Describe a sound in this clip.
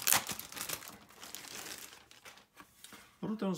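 Plastic wrapping crinkles and rustles as a hand handles it.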